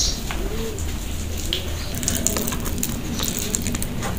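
A hand squishes and mixes food in a metal bowl.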